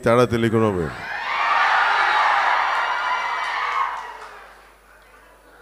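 A crowd cheers and claps loudly.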